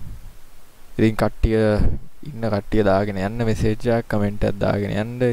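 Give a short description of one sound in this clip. A young man speaks calmly into a headset microphone.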